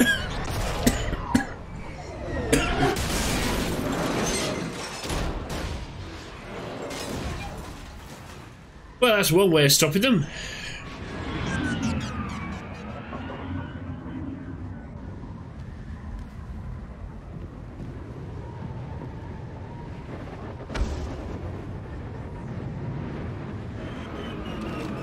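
A man talks into a microphone with animation.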